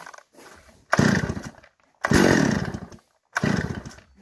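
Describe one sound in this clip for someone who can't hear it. A chainsaw's starter cord rasps as it is pulled hard several times.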